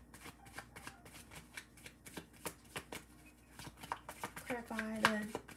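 Cards shuffle and snap together in quick, light slaps.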